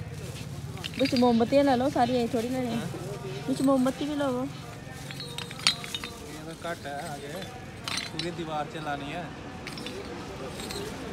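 A young man speaks to the listener close by.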